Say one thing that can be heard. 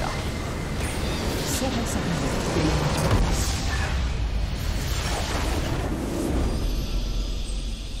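Game spell effects burst and crackle in a fight.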